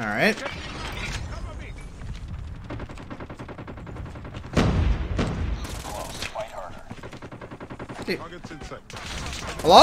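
Rapid gunfire rattles from a game.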